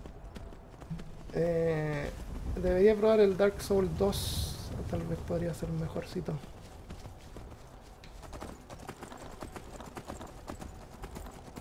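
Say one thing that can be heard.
A horse's hooves clop on the ground.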